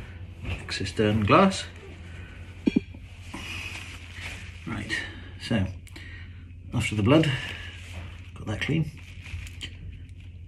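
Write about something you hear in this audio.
Paper tissue rustles and crinkles.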